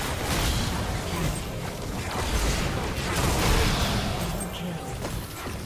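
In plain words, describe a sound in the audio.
Video game impact sounds clash and burst.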